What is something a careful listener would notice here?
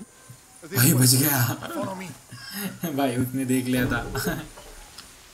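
A young man laughs and talks with animation close to a microphone.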